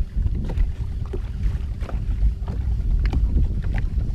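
A fishing reel clicks as it is cranked.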